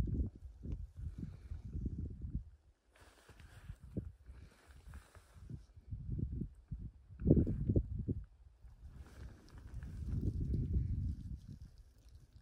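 Wind gusts across open ground and buffets the microphone with low rumbles.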